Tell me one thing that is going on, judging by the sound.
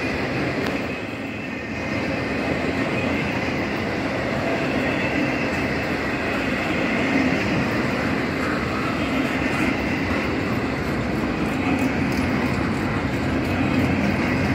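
A double-stack container freight train rumbles past on steel rails.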